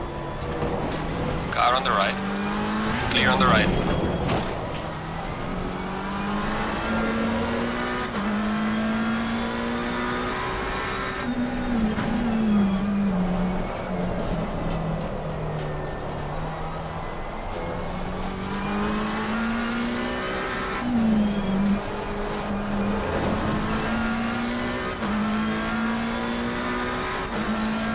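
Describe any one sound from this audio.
A racing car engine roars, rising in pitch and dropping as it shifts gears.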